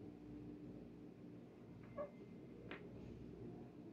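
A deck of cards rustles in a hand.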